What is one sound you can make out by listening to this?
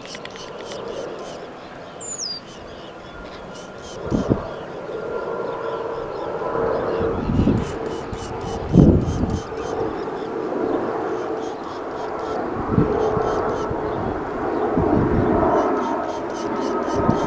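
Seabirds call with sharp, repeated cries across the water.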